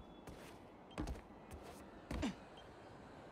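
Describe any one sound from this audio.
Webs shoot out with sharp thwips.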